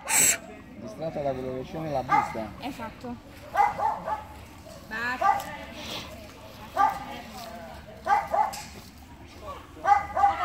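Dogs growl and yip as they play.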